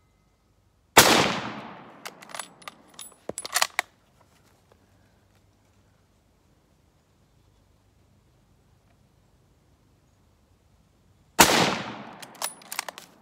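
A rifle fires two loud shots that echo outdoors.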